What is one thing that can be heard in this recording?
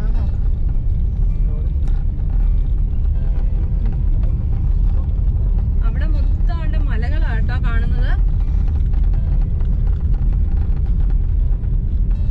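Tyres rumble on a paved road.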